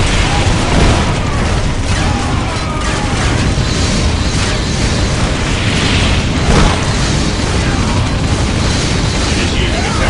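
A flamethrower roars in loud, steady bursts.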